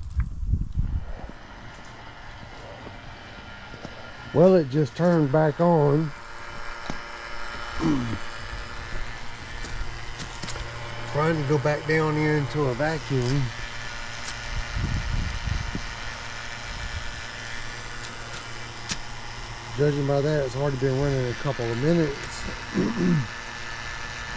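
A vacuum pump motor hums steadily.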